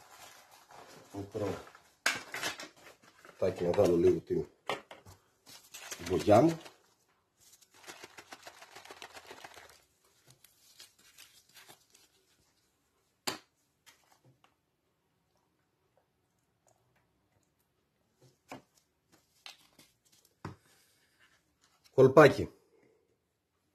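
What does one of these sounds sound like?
Plastic sheeting rustles and crinkles as hands handle it.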